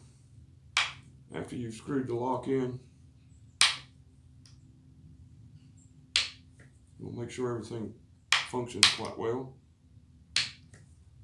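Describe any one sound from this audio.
A rifle's lock clicks sharply as it snaps.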